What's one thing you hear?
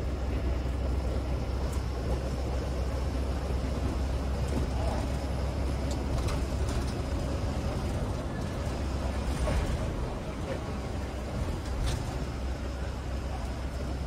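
A bus engine rumbles steadily as the bus drives along a road.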